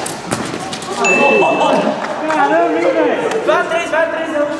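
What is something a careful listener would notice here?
Young men shout and call out with animation.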